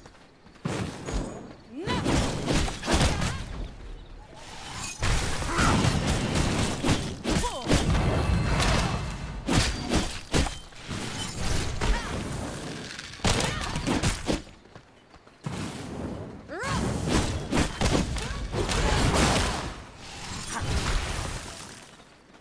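Spells and fire blasts burst and crackle in a game battle.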